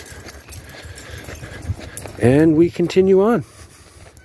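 A dog's paws patter on a dirt path.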